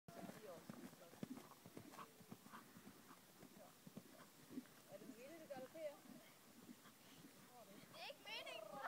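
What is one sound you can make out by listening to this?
A horse's hooves thud on soft ground as it canters.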